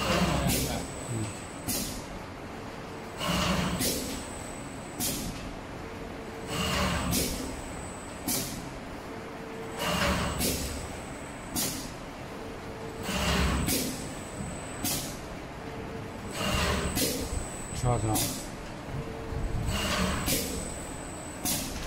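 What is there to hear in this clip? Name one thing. A cutting machine whirs in short bursts as it feeds strap through.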